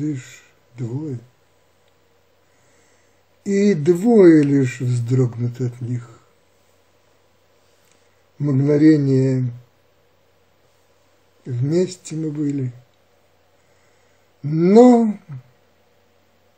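An elderly man speaks calmly close to the microphone, in short phrases with pauses.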